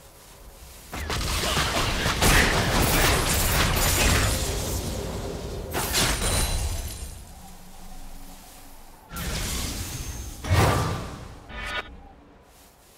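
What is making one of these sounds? Spell blasts and hits from a video game battle crash and burst in quick bursts.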